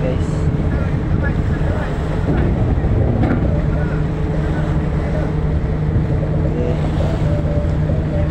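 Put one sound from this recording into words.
Waves splash against a ramp.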